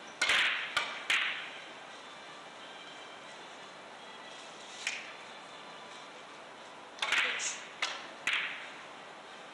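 Billiard balls click against each other and thud off the cushions.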